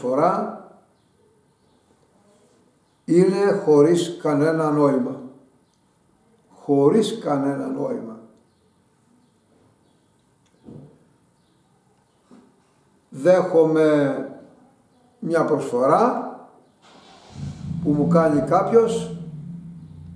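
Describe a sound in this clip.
An elderly man speaks close by, with feeling and in pauses.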